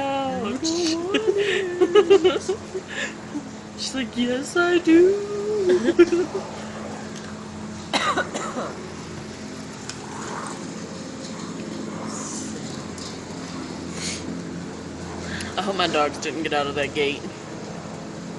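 A young woman talks playfully close to a phone microphone.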